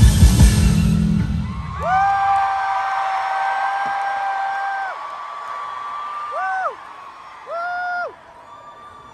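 Loud pop music plays through loudspeakers in a large hall, then fades to long held notes.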